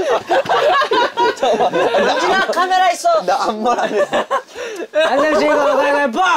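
Young men talk and laugh loudly and with animation nearby.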